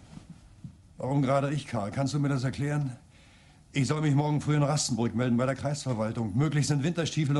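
A middle-aged man speaks firmly and loudly, close by, with a short pause.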